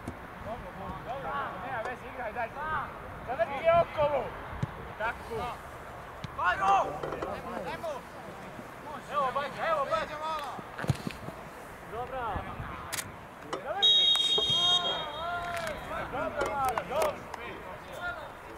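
Young men shout to each other from across an open field.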